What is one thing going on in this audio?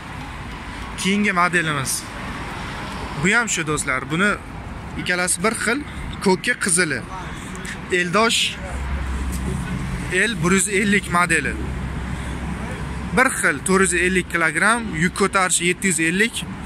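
A man talks close by, steadily explaining with animation.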